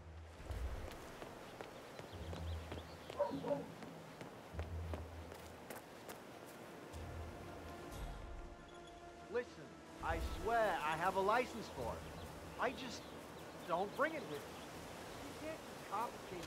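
Footsteps fall steadily on a path and grass.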